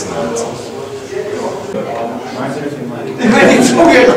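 A man speaks up close.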